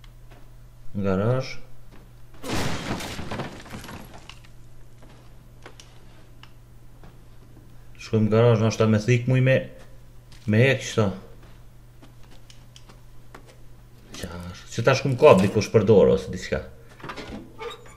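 A man talks into a close microphone, in short animated bursts.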